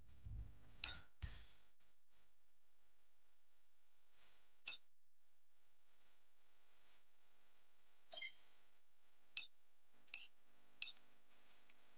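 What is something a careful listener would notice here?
Short electronic click sounds ring out several times.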